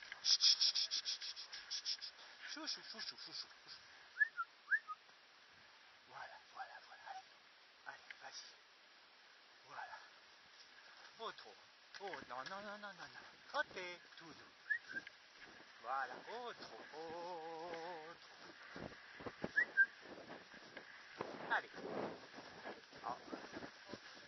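Hooves thud rhythmically on snow as a horse gallops.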